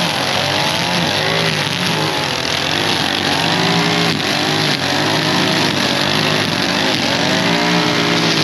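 A string trimmer engine whines loudly while cutting grass.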